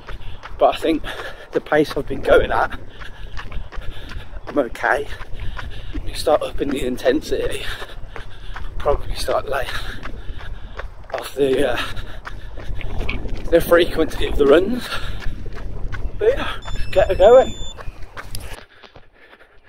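A man talks close to the microphone, slightly out of breath.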